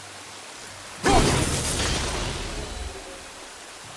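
A thrown axe whooshes and strikes with a loud burst.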